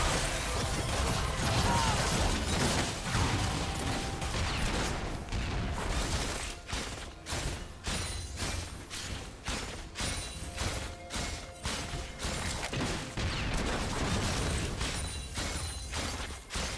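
Game spell effects and attacks clash and burst during a fight.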